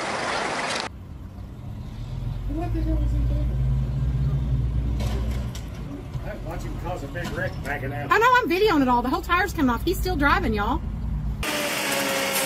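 A truck engine idles with a deep rumble.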